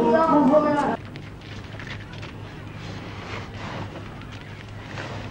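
Men thump and shift heavy loads outdoors.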